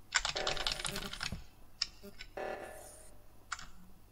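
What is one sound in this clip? An alarm blares in a game.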